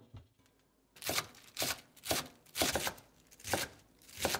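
A knife chops steadily on a wooden board.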